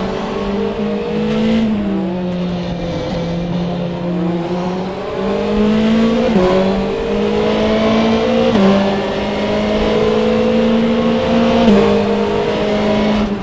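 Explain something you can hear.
A racing car engine roars steadily, climbing in pitch and dropping sharply at each gear change.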